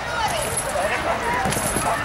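A dog's paws thud on a wooden ramp.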